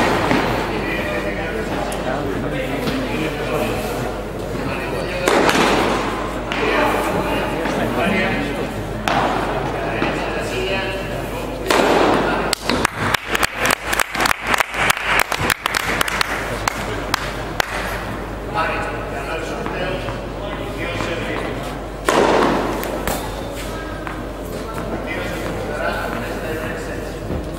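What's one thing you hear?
Tennis balls are struck back and forth with rackets, each hit a sharp pop.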